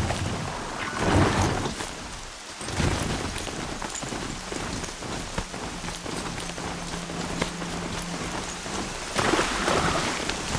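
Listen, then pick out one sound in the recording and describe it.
A mechanical beast's hooves thud steadily on the ground.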